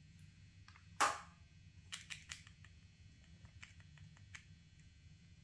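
A plastic cap clicks and taps against a pen.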